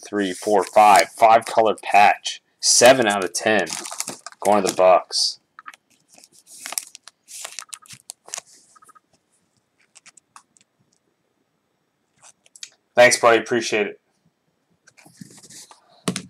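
A plastic card holder rustles and taps in hands.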